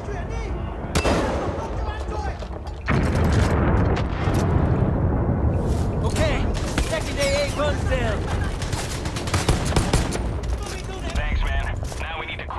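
Gunshots crack loudly, with echoes.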